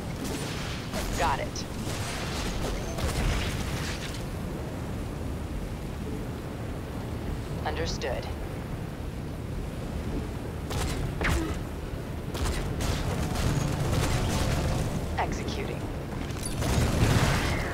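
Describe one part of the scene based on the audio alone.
Flamethrowers roar with bursts of fire.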